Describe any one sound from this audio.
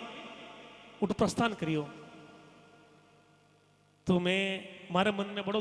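A man sings loudly into a microphone, heard through a loudspeaker.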